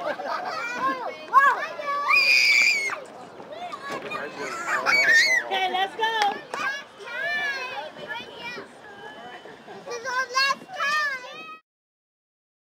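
Young children shout and chatter in an outdoor playground.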